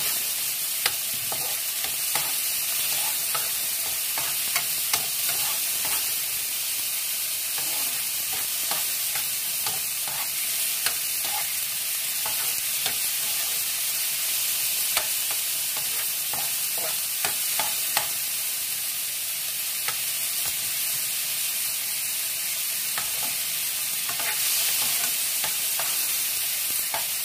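A utensil scrapes and clinks against a frying pan.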